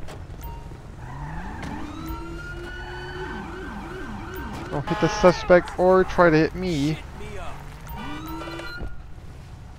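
A police siren wails and warbles up and down close by.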